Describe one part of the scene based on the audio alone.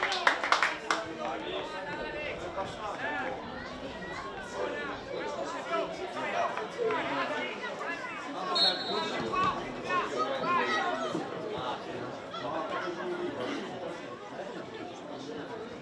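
Young players call out across an open field.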